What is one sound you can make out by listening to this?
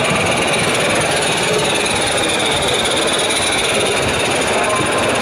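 Model train wheels clatter softly along the track.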